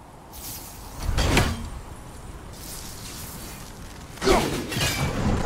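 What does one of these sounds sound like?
An axe whooshes through the air.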